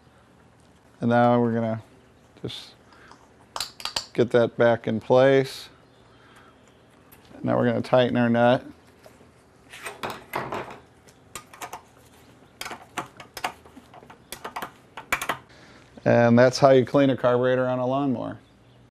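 A man talks calmly and clearly, close to a microphone.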